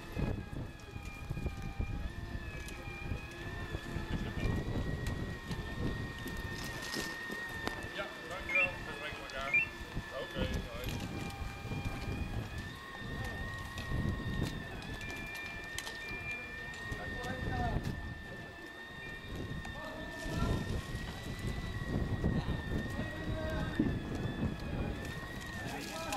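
A fire engine's pump runs with a steady whine.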